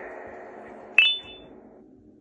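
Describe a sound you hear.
An electronic game chime rings out near the end.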